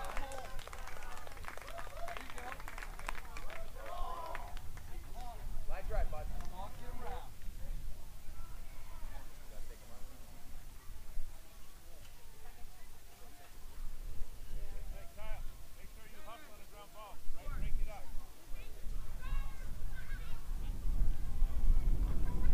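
Young men shout and call out in the distance across an open field.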